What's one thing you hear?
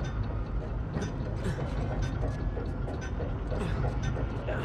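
Hands grab and scrape on a large metal gear while climbing.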